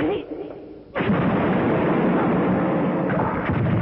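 An explosion booms loudly and debris rains down.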